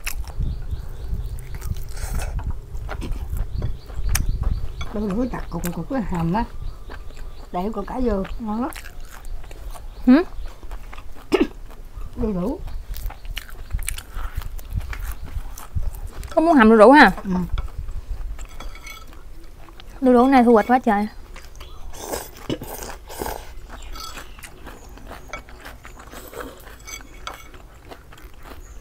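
A young woman chews and crunches food close by.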